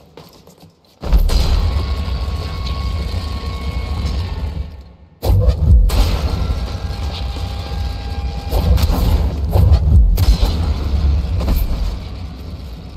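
Electric sparks crackle and fizz loudly nearby.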